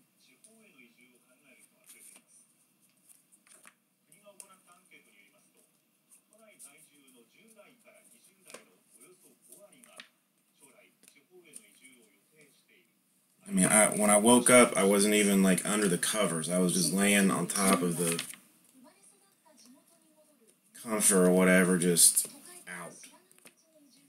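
Trading cards softly rustle and click as hands flip through a stack.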